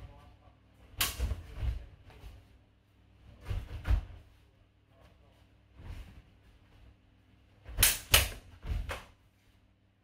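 Fencing blades clash and clatter sharply in a large echoing hall.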